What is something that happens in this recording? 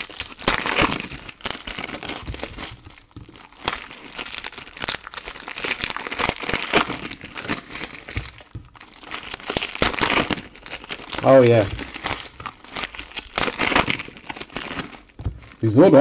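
Foil wrappers crinkle and rustle loudly.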